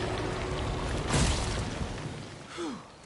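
A heavy mass crashes down with a deep, rumbling roar.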